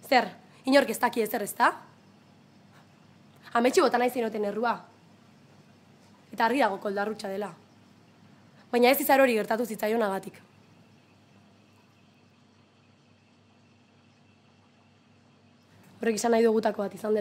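A young woman speaks with feeling, close by, in short bursts with pauses.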